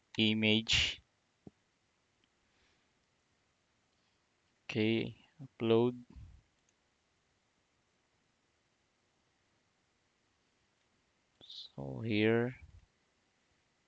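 A young man speaks calmly and briefly into a close microphone, with pauses.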